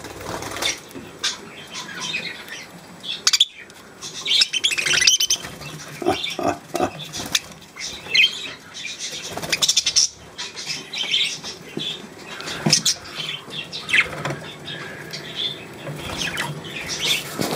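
Budgies chirp and chatter busily close by.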